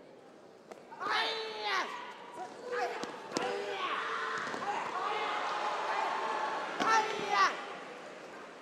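Young male athletes shout short, sharp battle cries in a large echoing hall.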